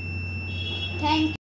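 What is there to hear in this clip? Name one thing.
A boy speaks calmly, close by.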